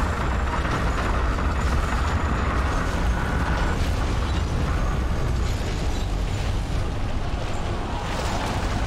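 A deep rumbling drone hums steadily.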